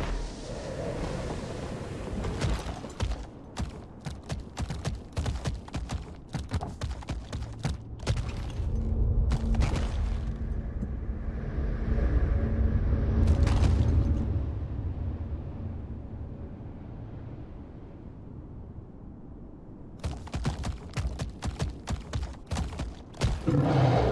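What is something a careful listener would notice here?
Large leathery wings beat and whoosh.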